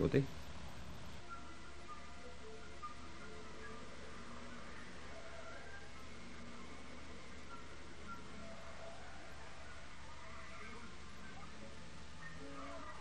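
A television plays faint, muffled sound.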